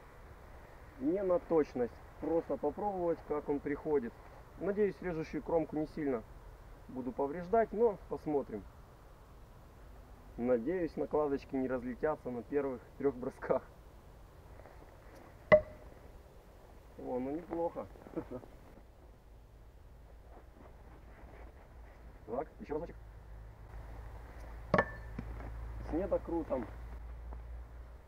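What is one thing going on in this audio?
A man talks calmly outdoors, close by.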